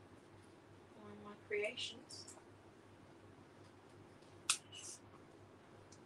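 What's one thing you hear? Paper rustles and crinkles as it is handled close by.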